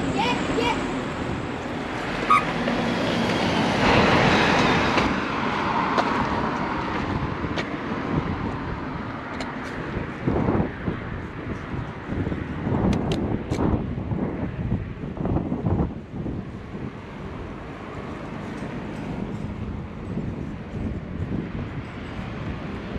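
Wind buffets and rumbles against the microphone.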